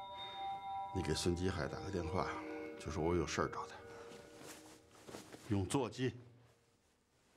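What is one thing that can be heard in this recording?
An elderly man speaks calmly and gravely nearby.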